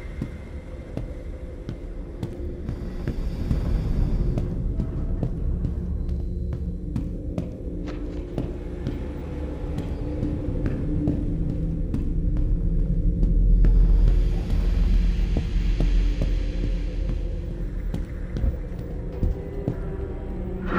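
Footsteps thud slowly on a hard floor in an echoing corridor.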